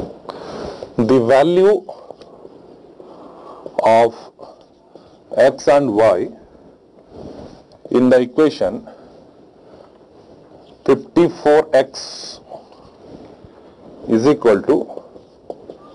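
A man speaks slowly and clearly, lecturing, with pauses between phrases.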